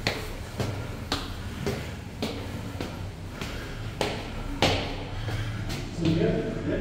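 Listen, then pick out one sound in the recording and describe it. Footsteps climb hard stairs at a steady pace.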